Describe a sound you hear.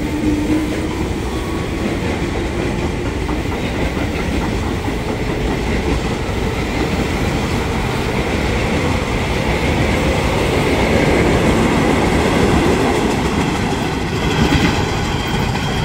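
An electric train rumbles past close by, its wheels clattering over the rail joints.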